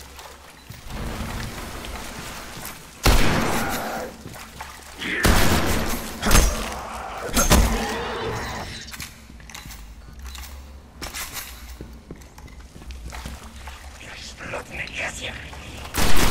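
Gunshots fire loudly in sharp bursts.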